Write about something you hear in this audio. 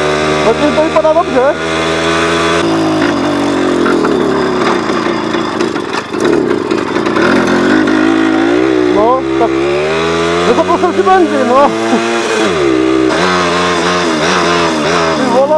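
A small moped engine buzzes steadily close by.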